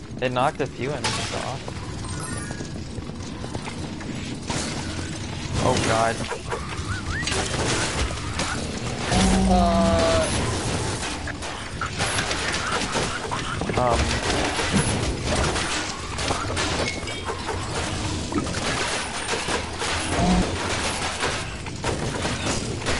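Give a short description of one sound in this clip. Game weapons slash and strike in quick, busy combat.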